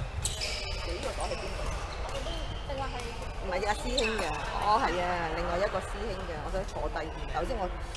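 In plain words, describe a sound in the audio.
Men call out and talk across a large echoing hall.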